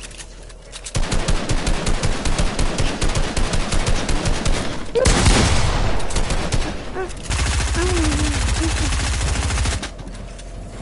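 Building pieces clatter rapidly into place in a game.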